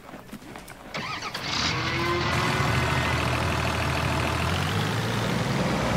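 A vehicle engine starts and runs with a steady hum.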